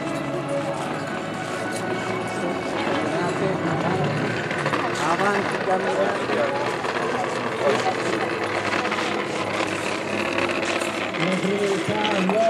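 A crowd of men and women murmurs and talks outdoors nearby.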